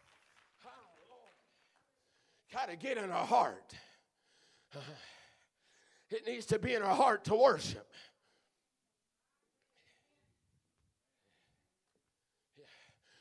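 A man preaches with animation through a microphone in a large echoing hall, with pauses between phrases.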